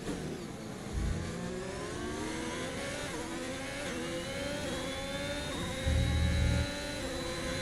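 Car tyres rumble over the kerbs.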